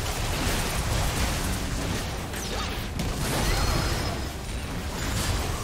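Magic spells crackle and burst in a busy game battle.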